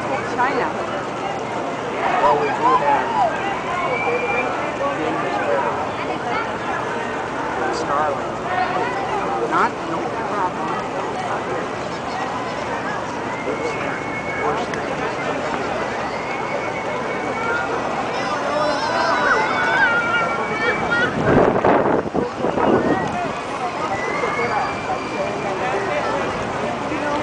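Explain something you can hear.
A crowd of people chatters throughout, outdoors.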